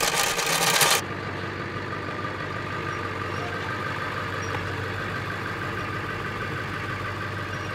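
A truck engine rumbles steadily as it drives slowly by.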